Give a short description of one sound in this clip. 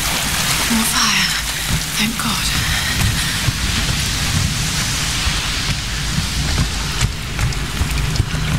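Footsteps thud quickly on wet ground.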